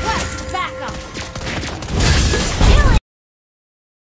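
Video game spell effects whoosh and crackle during a battle.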